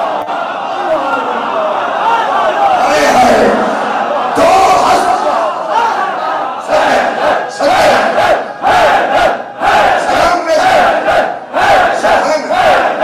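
A crowd chants along loudly.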